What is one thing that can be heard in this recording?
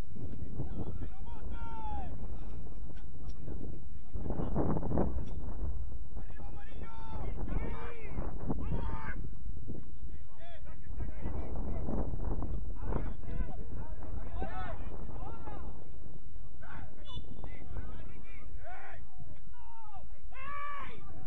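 Young women shout and call to each other across an open field outdoors.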